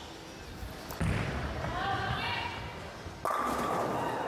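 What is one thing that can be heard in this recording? A bowling ball thuds onto a lane and rolls.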